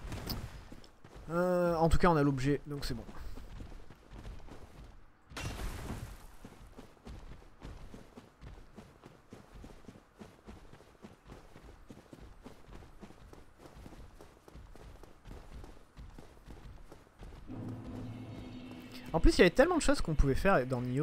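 Footsteps crunch on grass and stone.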